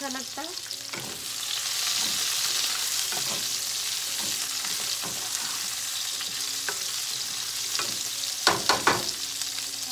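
A spatula scrapes and knocks against a frying pan.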